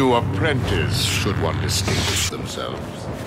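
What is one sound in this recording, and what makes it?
A lightsaber hums and buzzes.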